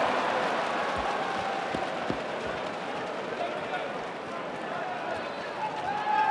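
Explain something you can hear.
A ball bounces on a hard court.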